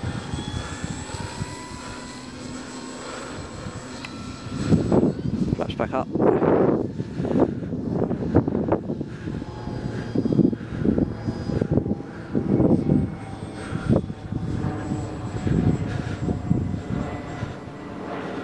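A model plane's small motor buzzes overhead, fading as it flies away.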